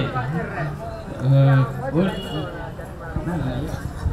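A young man speaks into a microphone over a loudspeaker.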